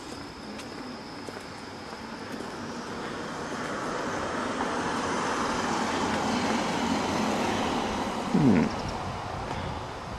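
A vehicle drives past close by, its rushing sound swelling and then fading.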